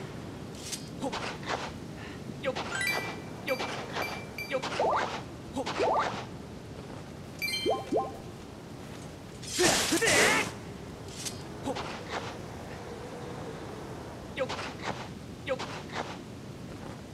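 A shovel digs into earth with scraping thuds.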